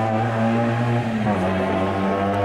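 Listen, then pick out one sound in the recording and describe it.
A rally car engine dips briefly as the car shifts gear.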